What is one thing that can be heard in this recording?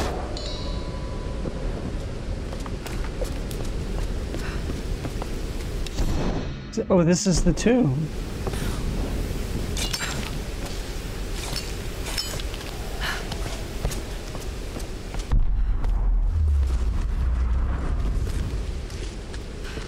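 Footsteps scuff over a stone floor.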